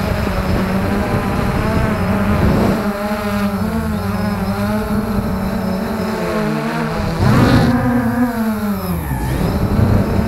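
A small drone's motors buzz close by, rising and falling in pitch.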